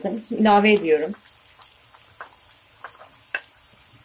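Chopped onions tumble into a hot pan.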